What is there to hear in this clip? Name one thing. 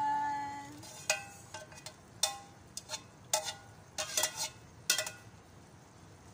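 A metal ladle clinks against a metal pot.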